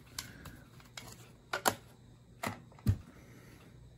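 Plastic buttons click a few times.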